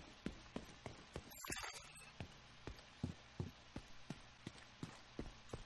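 Footsteps thud steadily on a hard floor at a quick walking pace.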